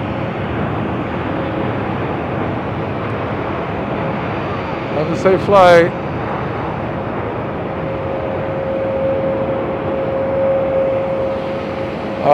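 A jet plane roars steadily as it speeds down the runway and takes off in the distance.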